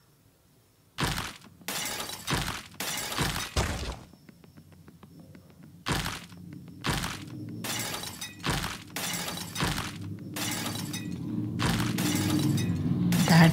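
Crunching mobile game sound effects play as blocks are dug away.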